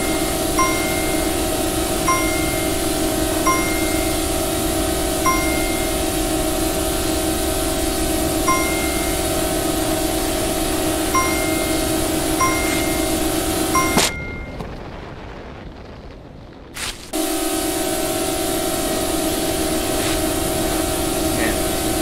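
A small drone's motors whine steadily.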